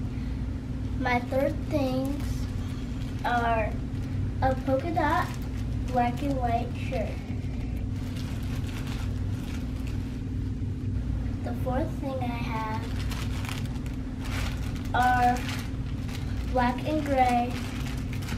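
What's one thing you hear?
A young girl talks excitedly, close by.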